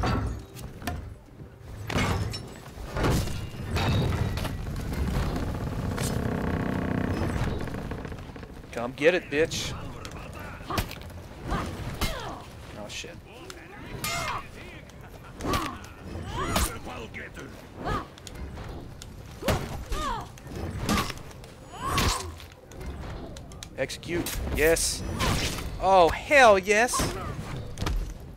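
A young man talks into a microphone with animation, close by.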